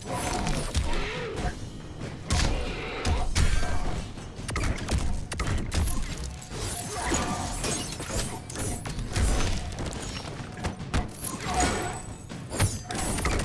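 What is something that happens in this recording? Fighters grunt and cry out with effort.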